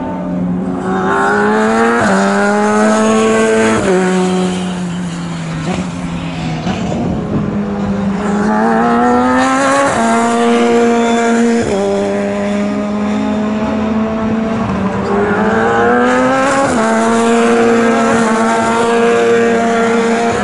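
A racing car engine screams loudly, rising in pitch and shifting up through the gears again and again.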